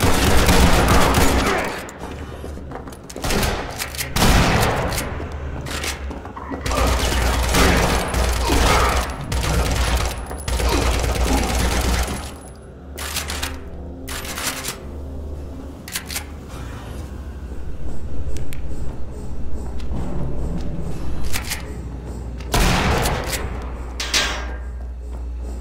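Gunshots crack loudly in an echoing corridor.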